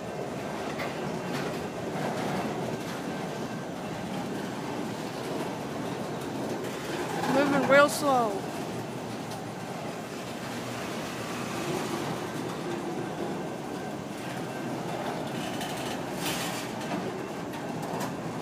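A freight train rolls past close by, rumbling and clattering steadily on the rails.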